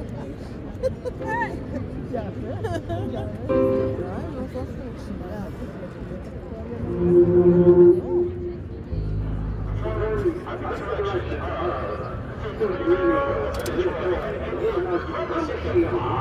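A marching band plays outdoors, heard from the stands.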